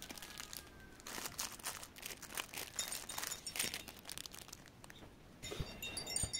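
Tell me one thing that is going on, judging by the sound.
Plastic wrapping crinkles as hands handle small rolls of tape.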